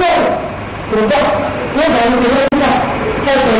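A woman calls out in reply.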